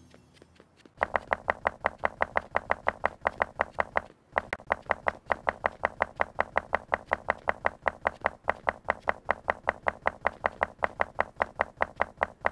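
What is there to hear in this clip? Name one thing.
Blocks are placed one after another in quick, even clicks.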